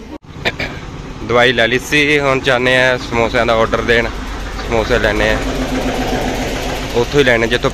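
A tractor engine chugs and rumbles as it drives past.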